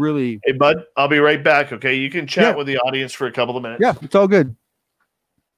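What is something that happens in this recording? A middle-aged man talks with animation over an online call.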